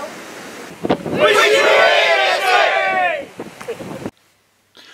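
A group of men cheer together outdoors.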